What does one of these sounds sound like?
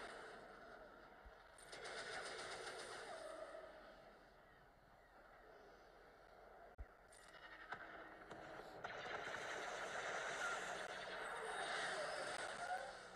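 Laser blasts fire rapidly in a space battle.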